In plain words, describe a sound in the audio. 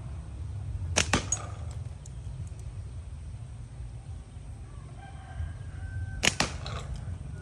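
A slingshot band snaps as a shot is fired.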